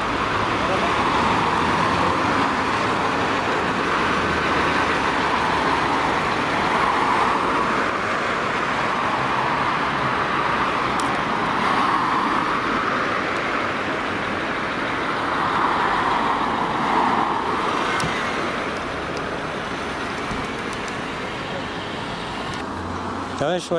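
Car engines hum and tyres roll by in steady street traffic.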